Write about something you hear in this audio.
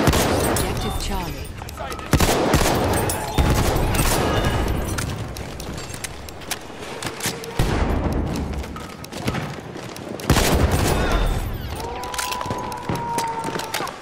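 Gunshots fire, echoing in a stone tunnel.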